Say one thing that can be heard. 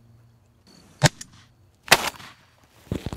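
A shotgun fires once with a sharp blast.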